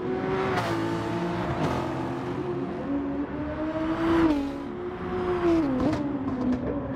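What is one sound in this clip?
A racing car engine roars steadily, its pitch shifting up and down with gear changes.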